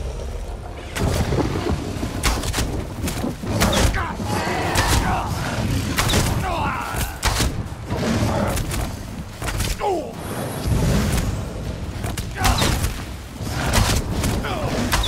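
A large beast growls and snarls.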